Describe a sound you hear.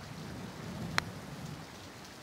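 A putter taps a golf ball softly.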